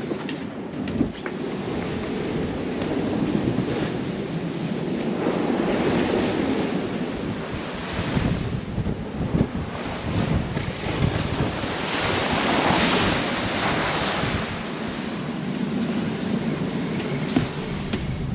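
Strong wind roars over the deck.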